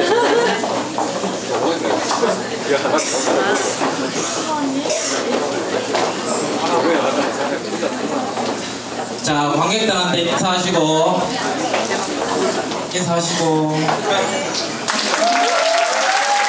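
A crowd chatters and murmurs in a noisy room.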